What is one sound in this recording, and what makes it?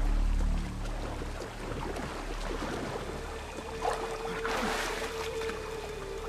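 Water splashes as a swimmer paddles through it.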